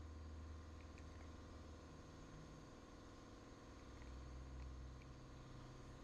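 A plastic cap twists off a bottle.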